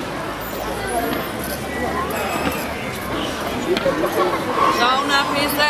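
A crowd of people chatter all around.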